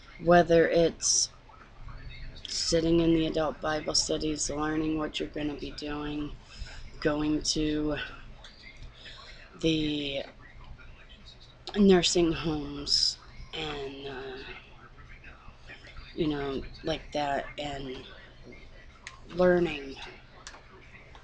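A woman talks close to a microphone, calmly, with pauses.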